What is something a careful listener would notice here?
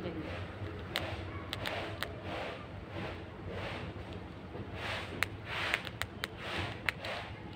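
A small squirrel crunches and nibbles on seeds up close.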